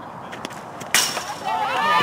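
A bat cracks against a softball.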